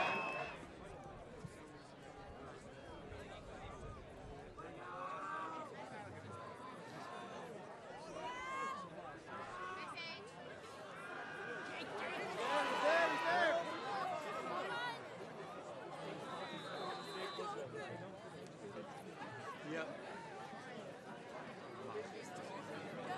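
Adult men and women talk casually close by.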